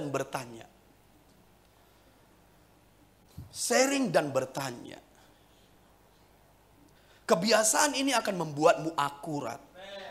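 A middle-aged man speaks through a microphone with pauses, his voice echoing slightly in the room.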